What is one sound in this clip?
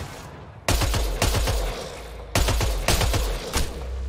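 A sniper rifle fires several loud shots.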